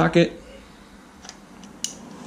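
A socket wrench clicks as it turns a bolt on a metal engine.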